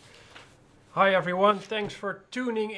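A man speaks calmly and clearly into a microphone, close by.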